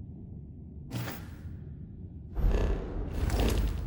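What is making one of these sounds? A low electronic whoosh sweeps as a menu closes.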